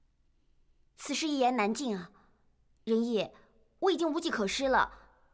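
A young woman speaks with worry.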